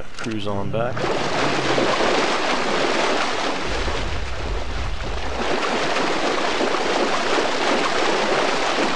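Water splashes under heavy footsteps.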